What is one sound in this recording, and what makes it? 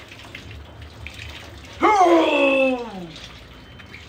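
Water splashes and drips as a wet cloth is wrung out.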